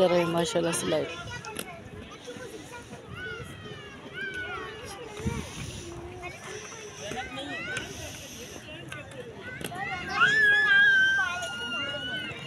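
Children chatter and call out in the distance outdoors.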